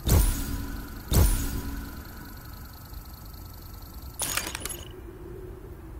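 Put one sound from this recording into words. A game's score tally plays sharp, booming hits as points add up.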